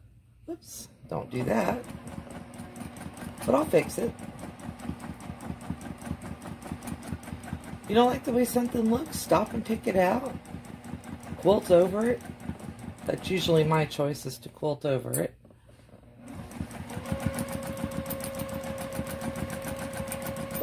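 A sewing machine stitches with a rapid, steady clatter.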